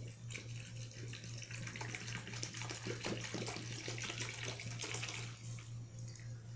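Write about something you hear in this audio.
Liquid pours and splashes into a pot.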